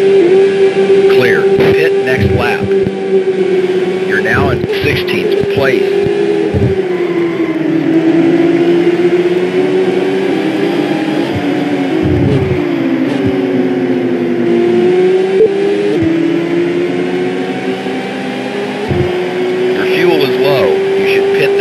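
Other racing cars whine past with a quick rise and fall in pitch.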